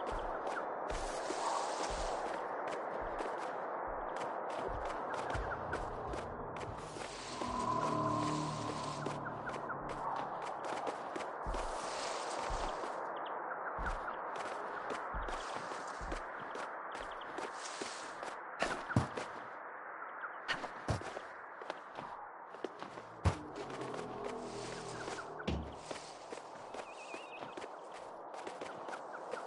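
Soft footsteps patter quickly through grass.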